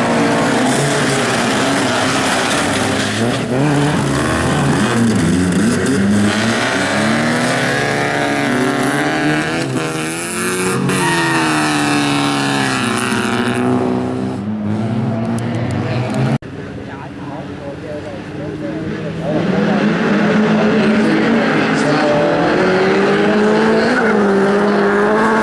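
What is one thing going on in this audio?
Racing car engines roar and rev loudly close by.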